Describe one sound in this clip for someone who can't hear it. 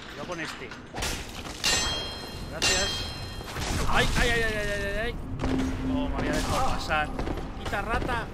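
Weapons clang and strike in a fight.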